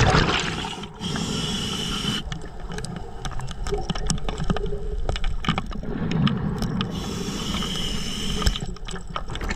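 A diver breathes in through a regulator with a hissing rush.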